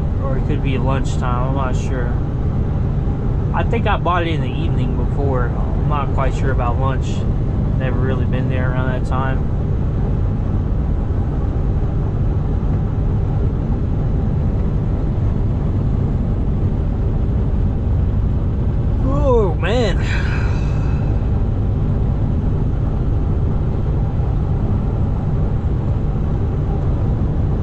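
Tyres hum on the road.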